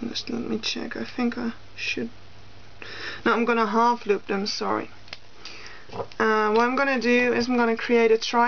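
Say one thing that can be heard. Rubber bands rustle and click softly under handling fingers.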